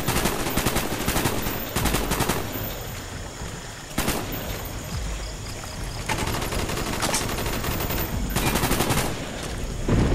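Rapid rifle shots crack loudly.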